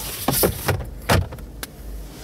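A glove box lid shuts with a knock.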